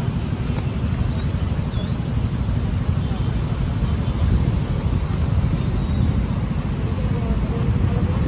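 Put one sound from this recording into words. City traffic hums nearby.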